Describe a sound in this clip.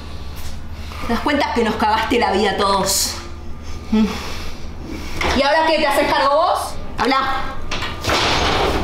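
A woman speaks intently up close.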